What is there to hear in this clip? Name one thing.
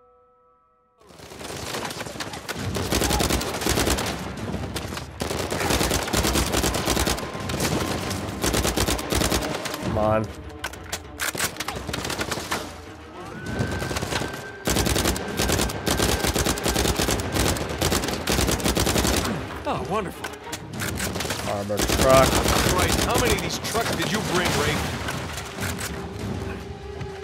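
Rapid gunfire rattles loudly and keeps going in bursts.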